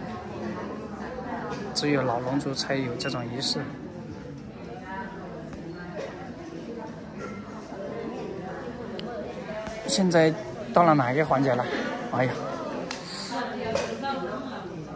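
A crowd of women chatters indoors.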